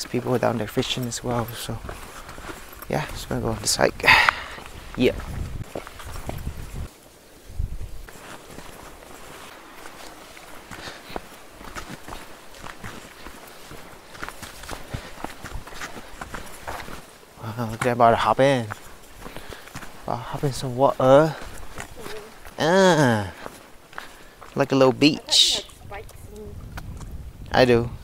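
A young man talks casually and close by, outdoors.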